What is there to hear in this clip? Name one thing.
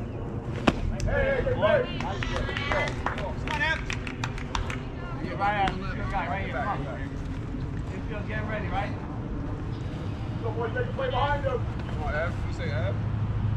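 Young players shout and cheer across the field.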